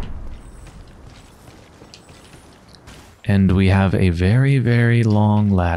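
Footsteps scrape over rocky ground.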